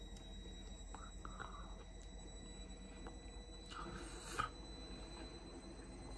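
A woman chews food close by.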